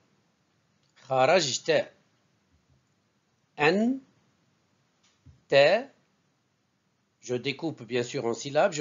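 A man speaks slowly and clearly into a close microphone, pronouncing syllables with pauses between them.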